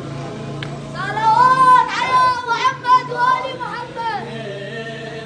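A man sings a loud wailing chant through a loudspeaker.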